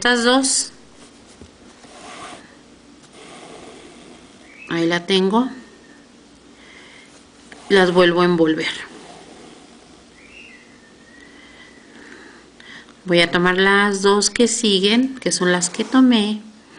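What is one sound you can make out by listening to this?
A woman speaks calmly close by, in short bursts.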